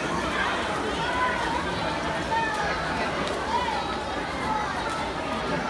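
A crowd cheers and shouts, echoing in a large indoor hall.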